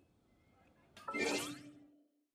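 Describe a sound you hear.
A magical sparkling chime rings out and fades.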